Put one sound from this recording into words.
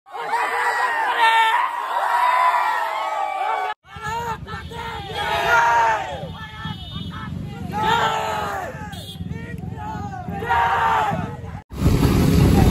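A crowd of young men chant and cheer loudly.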